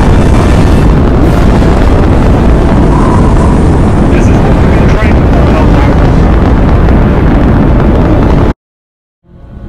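A deep, loud roar rumbles as drop pods plunge through the sky, then cuts off abruptly.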